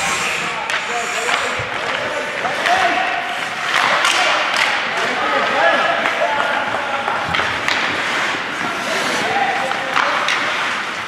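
Young players shout across the rink.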